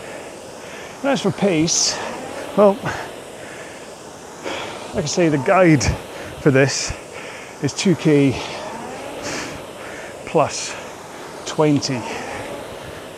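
A man speaks calmly and breathily into a close microphone.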